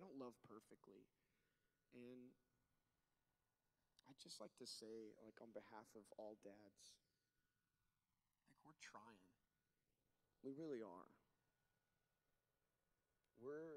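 A man speaks calmly into a microphone, heard through loudspeakers, with pauses.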